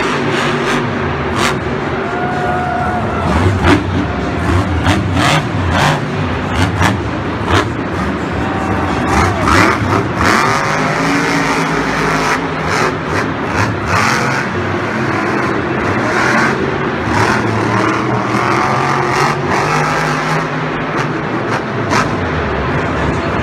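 Big tyres thump and bang on dirt as a truck lands jumps.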